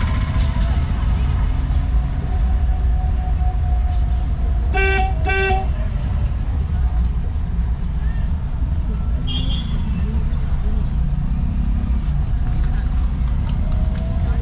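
A car engine hums steadily from inside the car while driving.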